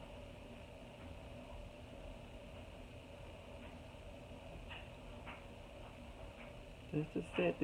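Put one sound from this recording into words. A makeup brush softly brushes across skin.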